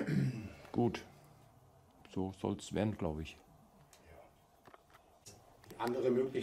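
A middle-aged man speaks calmly and close by, pausing between phrases.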